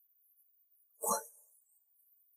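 A woman speaks a single short word.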